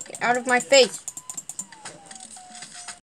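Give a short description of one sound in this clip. Footsteps patter quickly from a video game through computer speakers.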